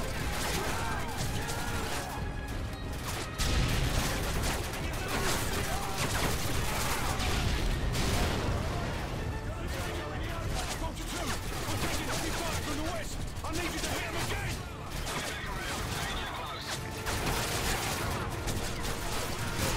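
Rapid gunfire crackles and echoes.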